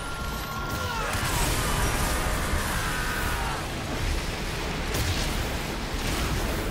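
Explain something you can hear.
A magical energy beam blasts with a loud roaring hum.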